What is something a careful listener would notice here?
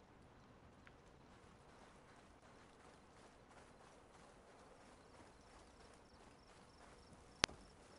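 Footsteps run quickly over gravelly ground.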